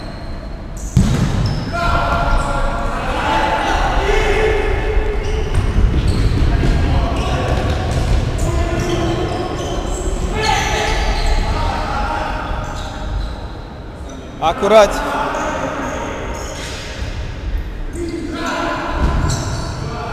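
A ball thumps off a player's foot.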